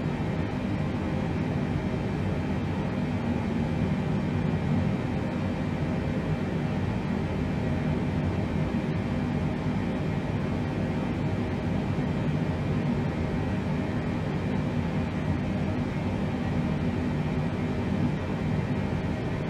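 An aircraft's engines drone low and steady.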